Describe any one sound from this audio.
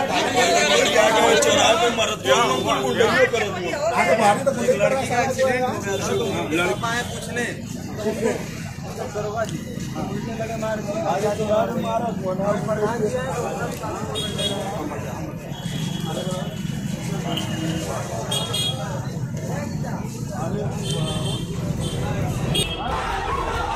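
A crowd of men talk and shout over one another outdoors.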